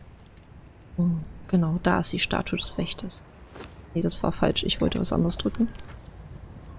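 A young woman talks with animation close to a microphone.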